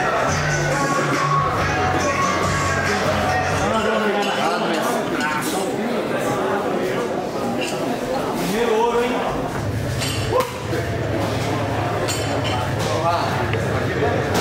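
A crowd of spectators chatters in a large, echoing hall.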